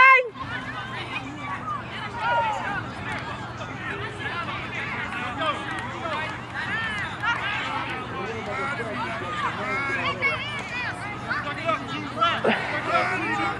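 Children shout and cheer outdoors.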